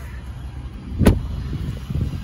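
A vehicle door shuts with a thud.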